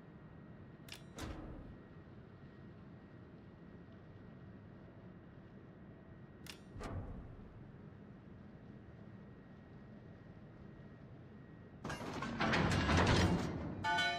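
Heavy ship guns fire with deep booms.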